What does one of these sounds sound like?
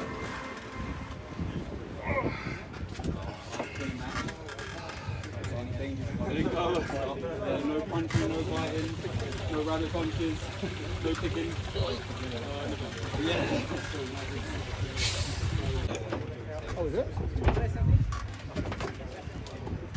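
Several men talk and call out outdoors.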